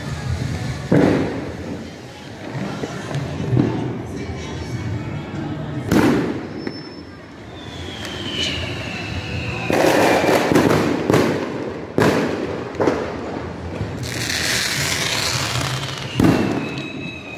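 Fireworks bang and pop loudly, with echoes.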